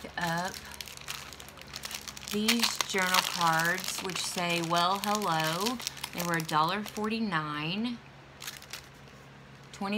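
Plastic packaging crinkles as hands handle it.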